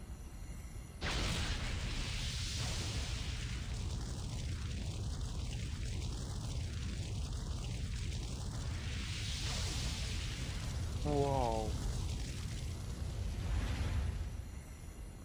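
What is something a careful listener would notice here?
A fiery blast roars loudly and rumbles.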